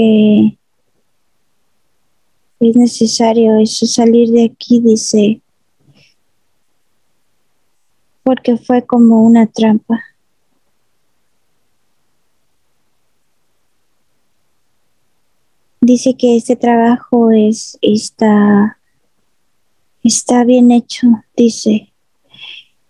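A man speaks calmly in short bursts through an online call.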